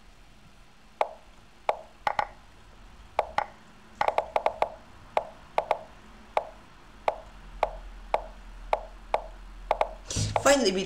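Sharp chess move clicks sound one after another at an uneven pace.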